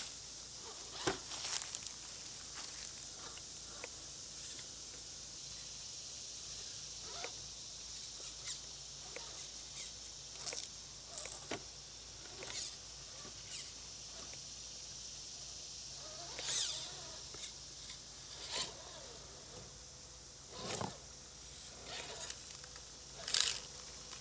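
Plastic tyres knock and scrape against stones.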